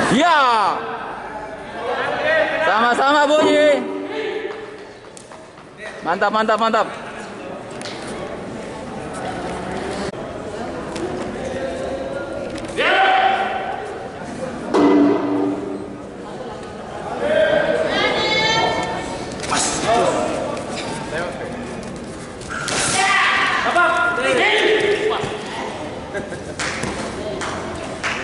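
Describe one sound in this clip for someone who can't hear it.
A man calls out commands loudly in a large echoing hall.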